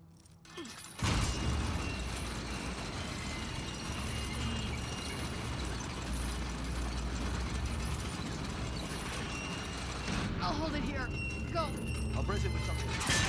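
A heavy metal wheel creaks and grinds as it is turned.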